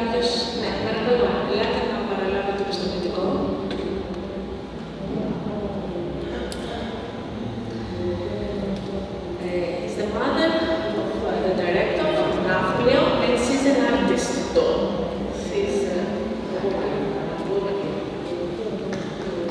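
A woman speaks through a microphone and loudspeakers in an echoing hall.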